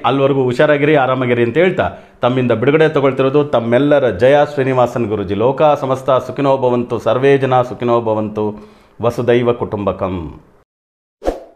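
A man speaks calmly and steadily into a close microphone.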